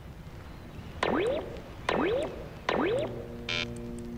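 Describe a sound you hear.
Short rising whooshes play as a game piece moves.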